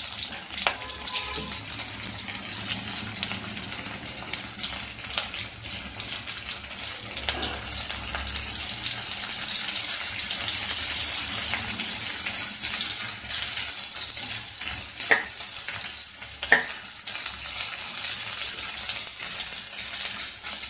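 Oil sizzles and crackles steadily in a hot pan.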